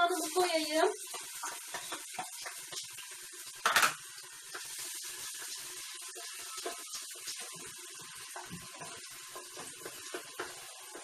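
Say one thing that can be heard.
A metal pot and lid clink and clatter close by.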